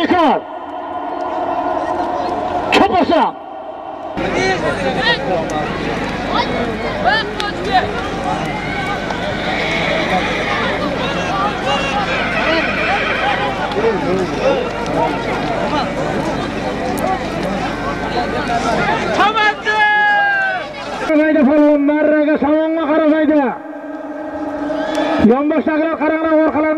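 A crowd of men shouts and clamours outdoors.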